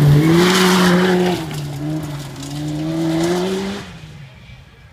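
A rally car engine roars loudly as the car slides around a turn.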